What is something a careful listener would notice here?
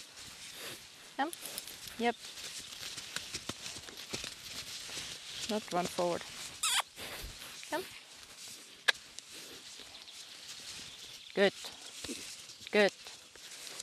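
Hooves thud softly on sand.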